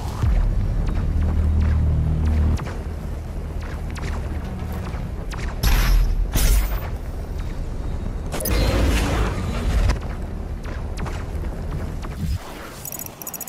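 Deep rumbling and crashing game action sounds play loudly.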